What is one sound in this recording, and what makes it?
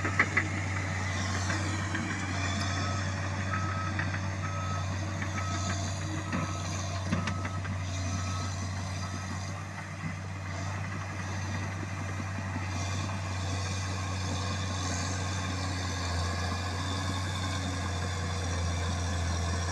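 Bulldozer tracks clank and squeak as they move.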